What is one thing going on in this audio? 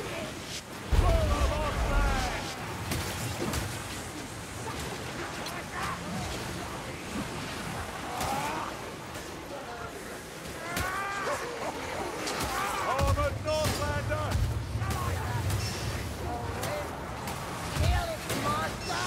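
Creatures snarl and screech.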